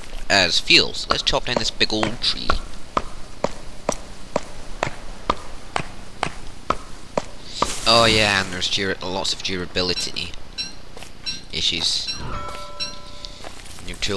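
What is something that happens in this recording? An axe chops into wood with steady, regular knocks.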